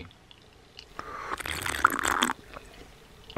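A young man slurps a drink loudly.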